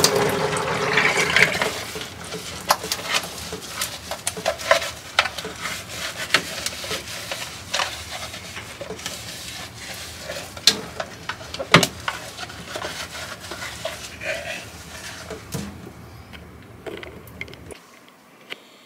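Plastic parts clatter and knock in the hands.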